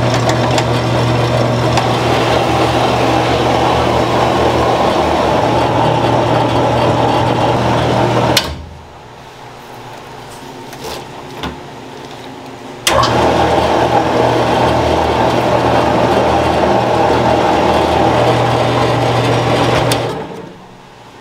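A noodle machine hums and rumbles steadily with a loud drone.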